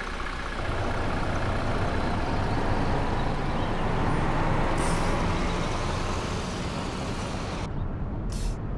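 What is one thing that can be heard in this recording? Tyres roar on the road as a bus drives past.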